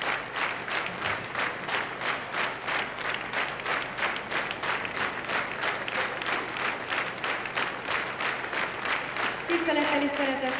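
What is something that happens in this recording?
A large crowd claps in steady rhythm.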